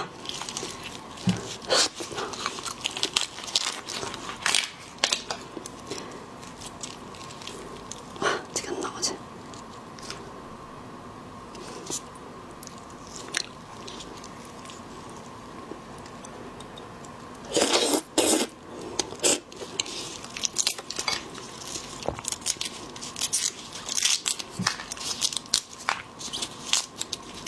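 Close, crisp crackling and snapping of shells as hands peel prawns.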